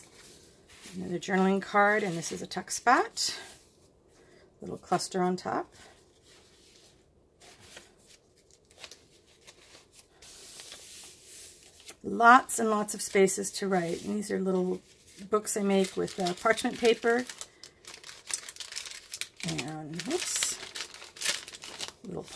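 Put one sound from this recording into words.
Paper pages rustle and flip as they are turned by hand.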